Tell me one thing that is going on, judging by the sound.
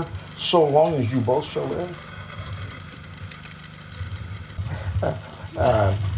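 An elderly man speaks calmly outdoors, in slow phrases.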